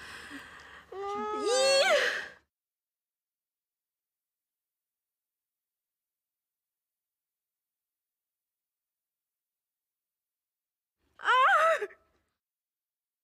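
A young woman sobs and cries out in distress.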